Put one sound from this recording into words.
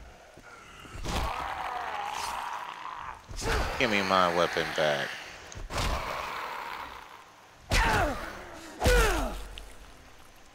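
A blade hacks into flesh with heavy, wet thuds.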